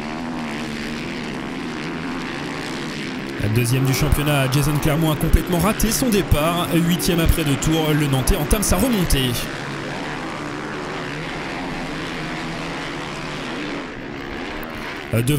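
Motorcycle engines roar and whine as dirt bikes race past.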